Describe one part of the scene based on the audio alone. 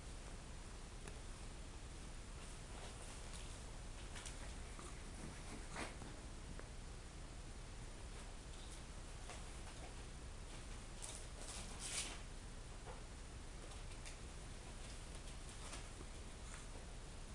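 A puppy rustles and tears at paper on the floor.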